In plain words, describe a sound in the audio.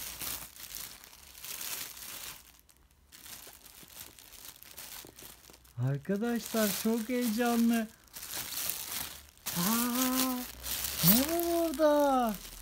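Foil wrapping crinkles and rustles as hands tear it open.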